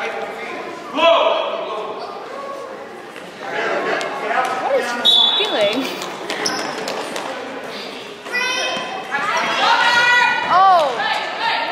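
Sneakers squeak on the court floor.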